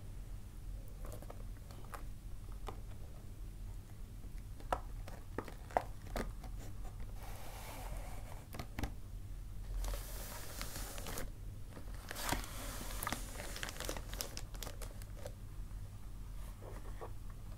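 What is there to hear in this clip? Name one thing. A plastic bag rustles and crinkles as hands handle it.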